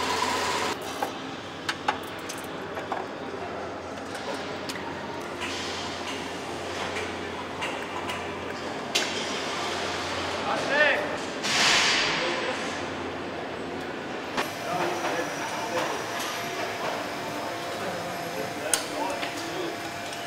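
Factory machinery hums steadily in a large echoing hall.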